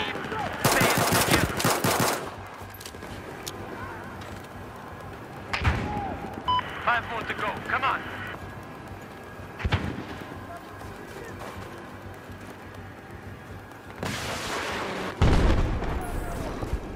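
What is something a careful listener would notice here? A pistol fires sharp shots in bursts.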